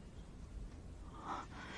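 A middle-aged woman speaks up emotionally nearby.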